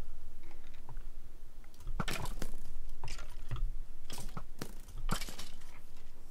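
A bow twangs as arrows are shot in quick succession.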